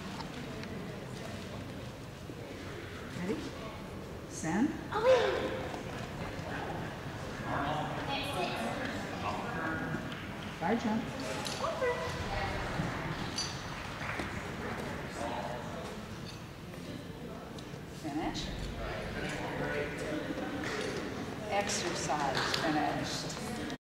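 A young woman talks softly to a dog in an echoing hall.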